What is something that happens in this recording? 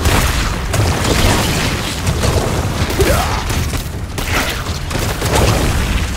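Magic blasts and impacts crackle and boom in a fight.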